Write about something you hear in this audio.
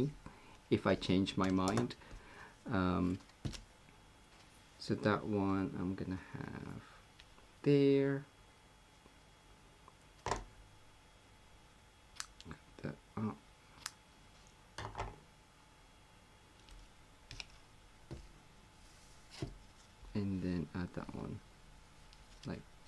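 Paper rustles and taps as it is handled.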